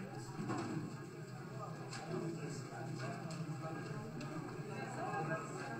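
Men and women chatter in a large room.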